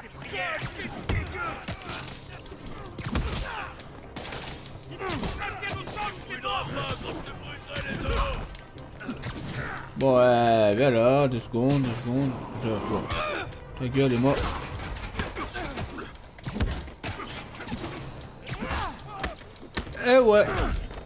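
Punches and kicks thud and smack in a video game fight.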